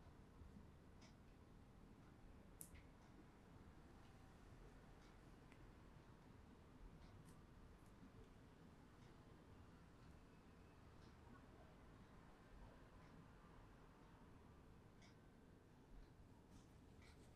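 Small metal tools click and tap softly, close by.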